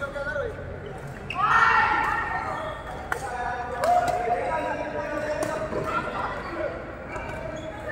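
Badminton rackets sharply strike a shuttlecock.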